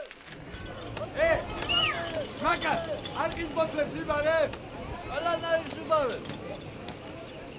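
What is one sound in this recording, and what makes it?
A child calls out outdoors.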